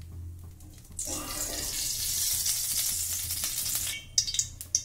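Oil pours into a hot wok and sizzles loudly.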